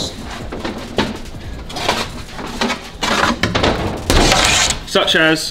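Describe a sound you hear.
Wooden boards scrape and knock as they are moved.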